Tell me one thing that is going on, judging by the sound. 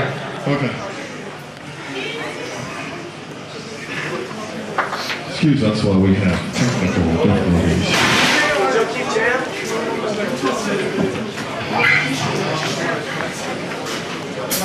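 Electric guitars play loudly through amplifiers in a large echoing hall.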